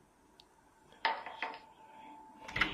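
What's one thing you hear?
A door handle is pressed down and the latch clicks.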